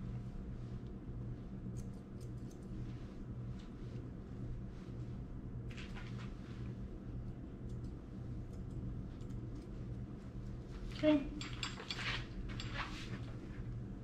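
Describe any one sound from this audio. Scissors snip quickly and repeatedly close by.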